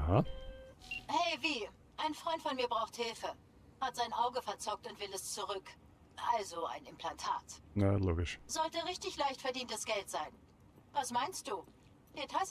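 A man speaks calmly over a phone call.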